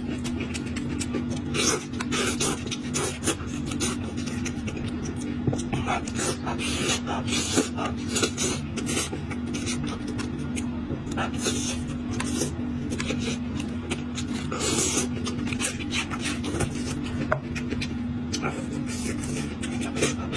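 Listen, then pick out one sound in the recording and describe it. A man chews and slurps meat close to a clip-on microphone.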